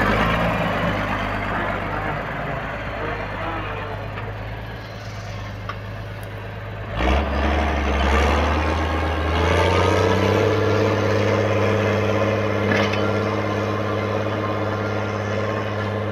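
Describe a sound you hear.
A plough scrapes and turns heavy soil.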